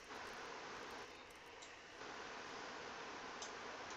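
A weapon clicks as it is swapped.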